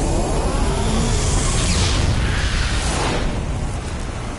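A fiery blast bursts with a loud roar.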